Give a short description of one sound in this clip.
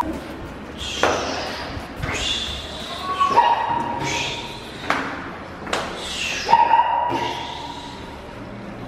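Footsteps tap on hard stairs.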